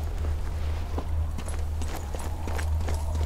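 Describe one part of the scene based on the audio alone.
Footsteps scuff on cobblestones.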